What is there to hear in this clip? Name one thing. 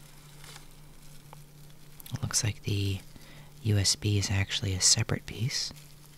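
Plastic wrapping crinkles as hands handle it.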